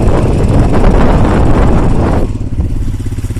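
A motorcycle engine runs while riding.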